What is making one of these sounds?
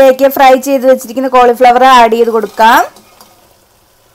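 Fried pieces of food tumble into a pan of sauce.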